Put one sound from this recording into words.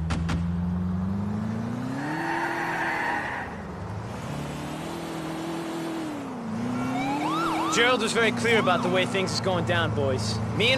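A car engine hums, revving up and down as the car drives.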